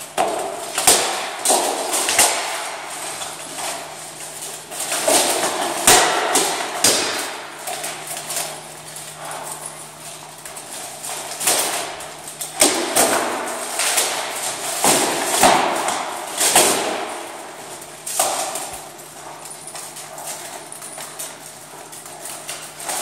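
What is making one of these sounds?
Steel plate armor clanks and rattles as fighters move.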